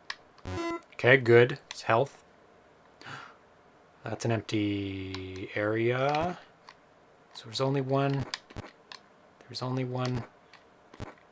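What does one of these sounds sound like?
Electronic game tones beep and buzz.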